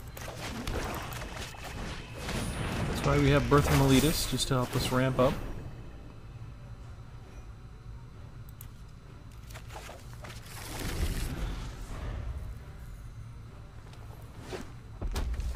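A card game plays short chiming and swooshing sound effects.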